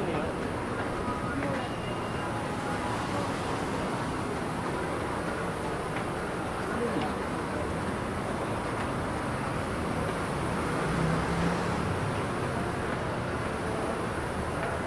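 Traffic rumbles steadily on a busy street below.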